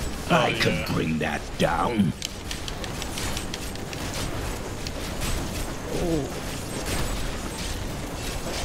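Magic spells burst and crackle in quick succession.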